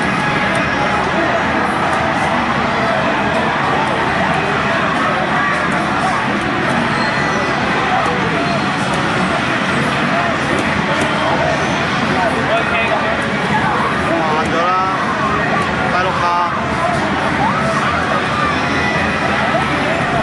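Punches, kicks and energy blasts from a fighting game crash loudly through a loudspeaker.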